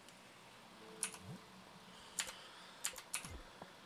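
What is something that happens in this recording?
Short game menu clicks and chimes sound.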